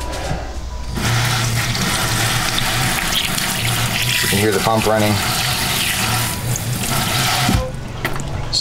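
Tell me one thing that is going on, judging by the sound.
Water runs from a tap and splashes steadily into a sink.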